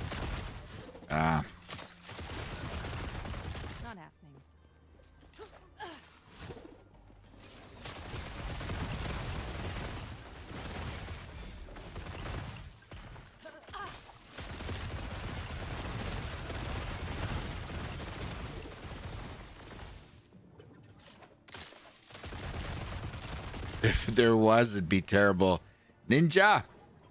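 A middle-aged man speaks into a microphone with animation.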